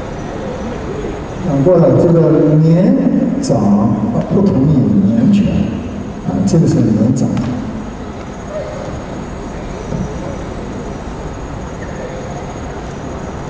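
Shoes tap and scuff on a wooden floor in a large echoing hall.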